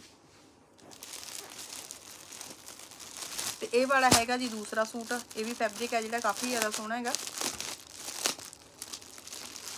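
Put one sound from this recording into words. A plastic packet crinkles as it is handled.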